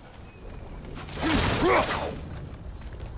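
A wooden barrel smashes apart with a loud crash.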